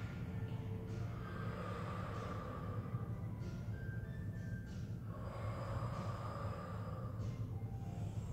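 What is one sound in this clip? A woman breathes in and out deeply.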